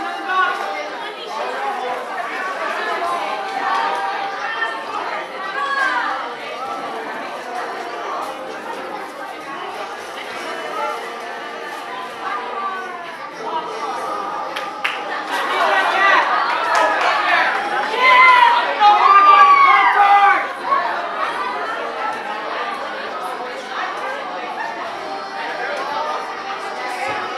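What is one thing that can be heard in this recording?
Wrapping paper crinkles and rustles as a gift is unwrapped.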